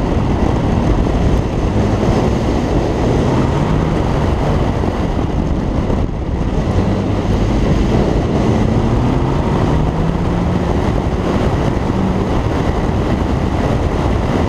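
Wind buffets loudly past the car.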